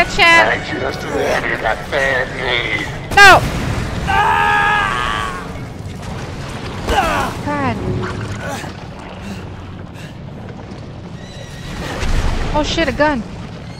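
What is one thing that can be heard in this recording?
A young woman talks and exclaims close to a microphone.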